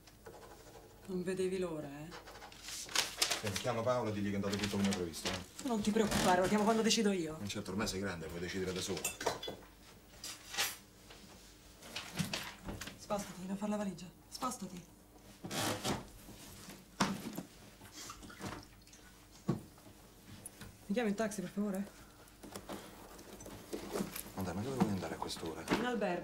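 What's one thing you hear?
A woman speaks sharply nearby.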